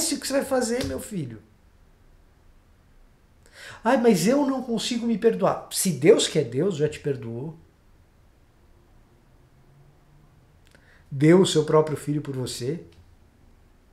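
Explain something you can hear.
A young man speaks calmly and close up, in short bursts with pauses.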